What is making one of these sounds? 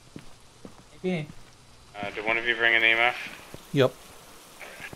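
A young man talks briefly into a close microphone, with animation.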